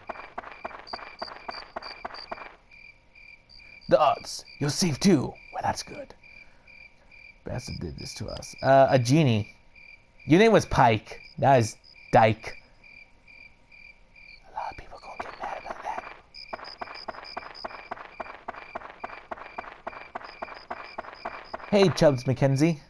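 Quick footsteps patter on soft ground.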